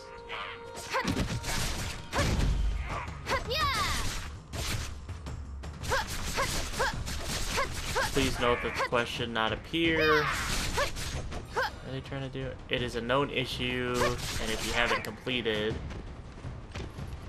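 Weapons slash and strike with heavy impacts in a fight.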